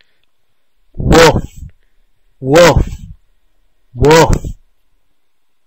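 A cartoon dog barks loudly three times.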